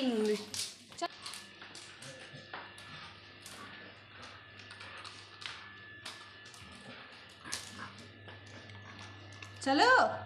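A dog's paws patter on stone stairs.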